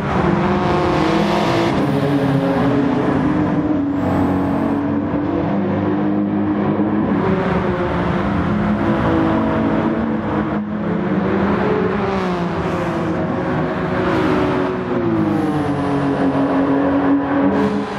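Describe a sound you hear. Racing car engines roar and rev up and down throughout.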